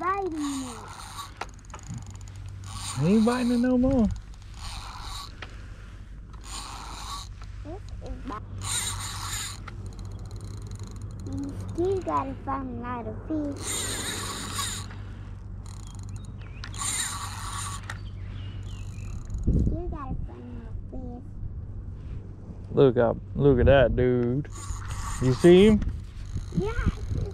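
A fishing reel whirs in short bursts as its handle is cranked.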